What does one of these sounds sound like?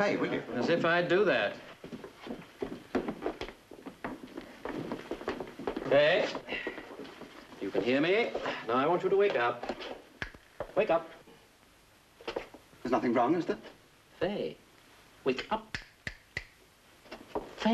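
Men talk close by, one speaking with animation.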